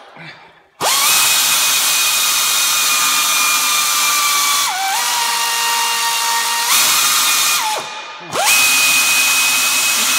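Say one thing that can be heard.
An air ratchet whines loudly in high-pitched bursts.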